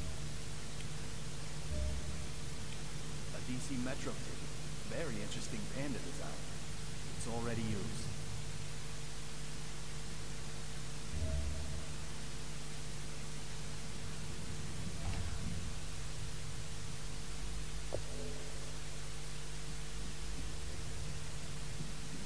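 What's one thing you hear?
An airliner cabin hums with a steady low drone.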